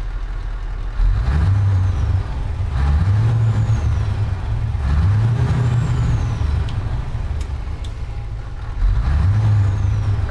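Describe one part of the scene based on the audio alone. A truck engine revs up in repeated surges and settles back.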